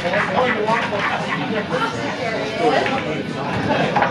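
Pool balls clack together on a table.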